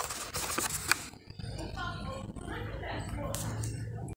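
Plastic packaging crinkles as a hand handles it.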